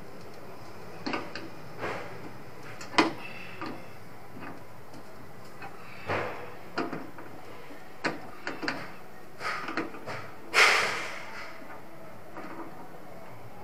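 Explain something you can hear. A metal wrench clicks and scrapes against metal fittings.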